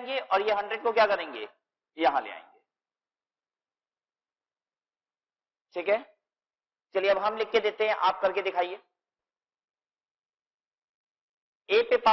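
A man speaks calmly through a close microphone, explaining.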